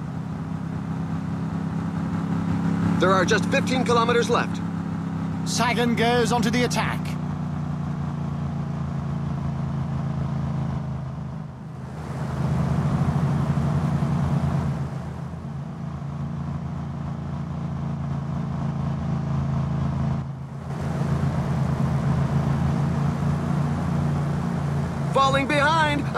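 A motorbike engine hums steadily nearby.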